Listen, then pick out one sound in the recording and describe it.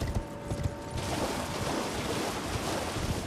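Water splashes under running feet.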